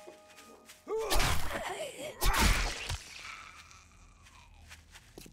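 A zombie growls and snarls up close.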